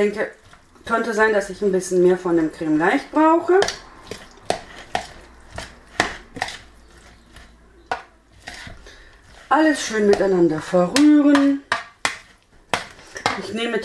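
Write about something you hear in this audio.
Hands mix food in a bowl with soft squelching.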